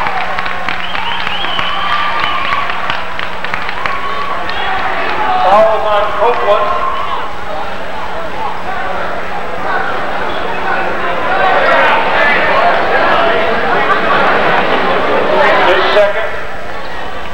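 A crowd chatters and cheers in a large echoing gym.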